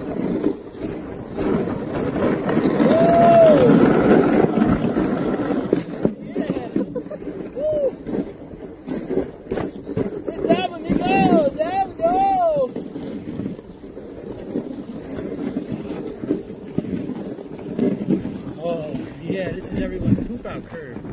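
Sled runners hiss and scrape over snow.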